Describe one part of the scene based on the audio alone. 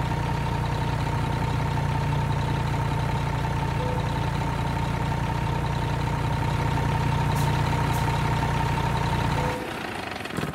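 A truck engine idles with a low, steady rumble, then shuts off.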